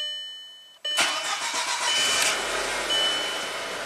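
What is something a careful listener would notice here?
A car engine cranks, starts and runs.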